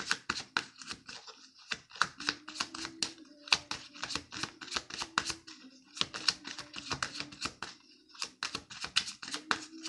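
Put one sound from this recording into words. Fingernails tap and click quickly on a hard plastic case.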